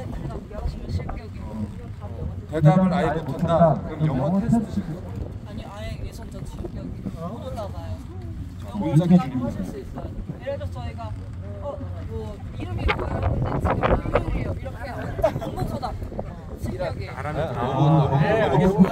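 A man explains calmly to a small group close by, outdoors.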